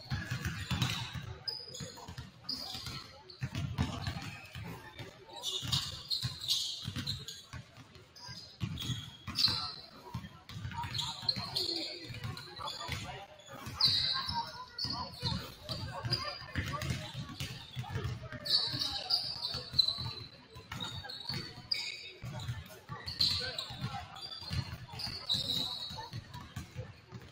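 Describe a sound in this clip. A basketball bounces on a hardwood floor in a large echoing gym.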